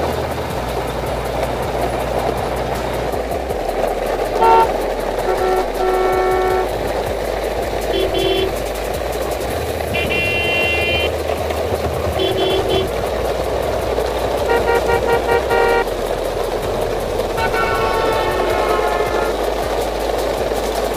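Plastic toy truck wheels roll and crunch over gravel.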